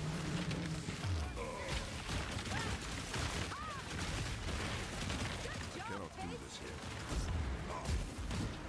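Magic blasts boom with deep rumbles.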